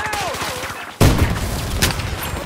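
An explosion booms loudly nearby.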